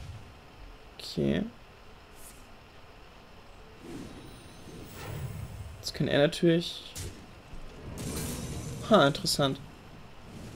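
Magical game effects whoosh and chime in short bursts.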